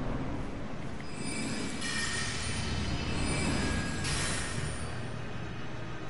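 A magic spell shimmers and chimes.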